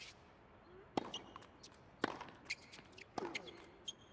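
A tennis ball is struck sharply by a racket, back and forth.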